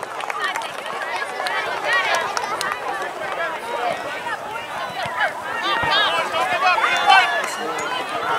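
Young players call out to each other from a distance.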